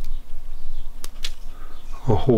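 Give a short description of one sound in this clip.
Small scissors snip through a soft plant stem.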